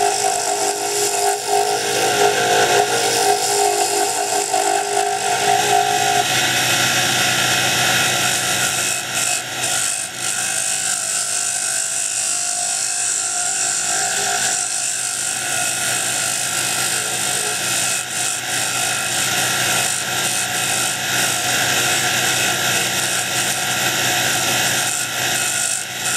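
A wood lathe motor hums.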